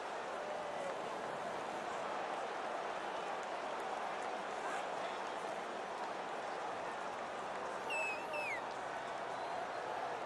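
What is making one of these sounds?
A large crowd cheers and roars steadily in a stadium.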